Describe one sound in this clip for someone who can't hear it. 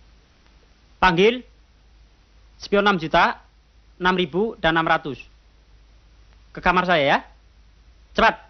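A man talks on a telephone.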